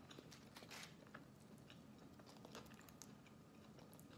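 Tortilla chips crunch.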